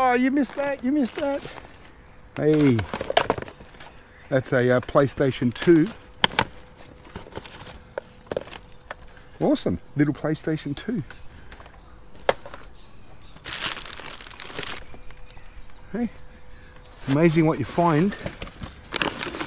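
Plastic items knock and rattle as they are handled.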